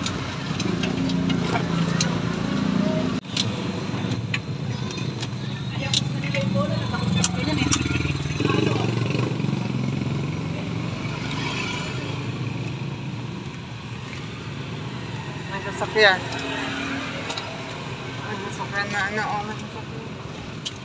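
A small vehicle's engine rumbles steadily while riding.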